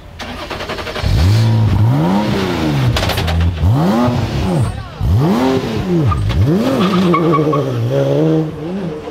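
A race car engine revs loudly, rising and falling in sharp bursts.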